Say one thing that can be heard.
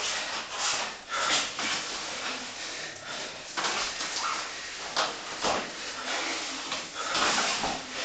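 Bodies thump and scuff on a padded mat.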